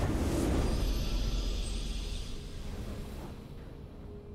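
A triumphant game fanfare bursts out and slowly fades.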